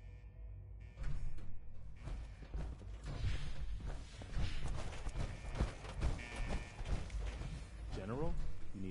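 Heavy metal footsteps clank and thud on a hard floor.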